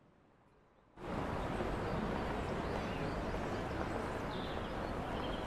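A train idles at a platform with a low hum.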